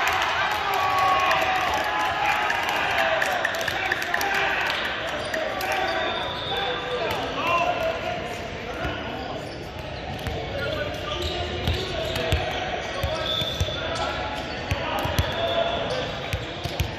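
Players shout and call out to each other in a large echoing gym.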